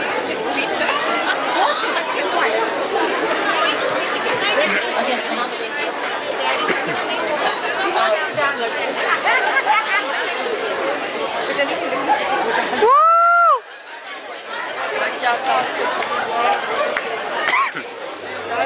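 A crowd of people chatter loudly in a large echoing hall.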